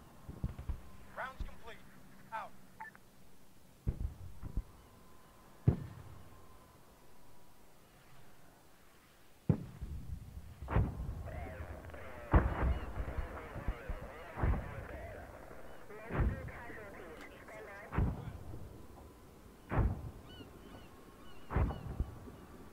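Explosions boom in the distance at intervals.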